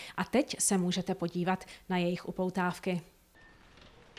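A middle-aged woman speaks clearly and with animation into a microphone.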